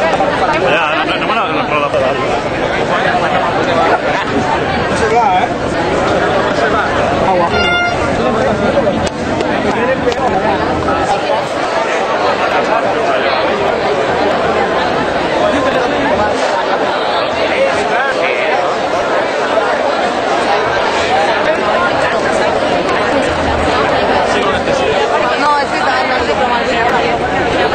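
A large crowd of men and women chatters and shouts loudly outdoors.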